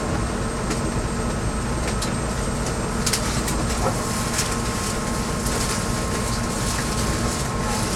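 A train rumbles steadily along the tracks from inside a carriage.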